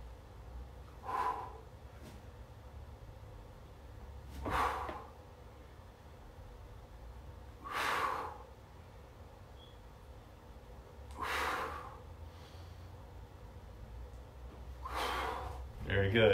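A man breathes out hard in regular bursts.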